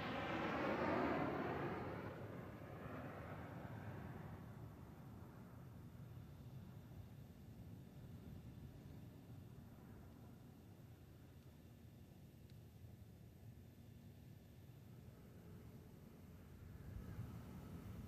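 A large aircraft rolls along a runway with a rushing roar that fades away.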